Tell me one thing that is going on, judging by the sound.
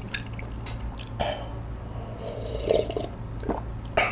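A young man gulps a drink.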